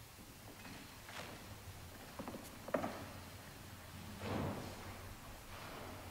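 Footsteps tread on a wooden floor.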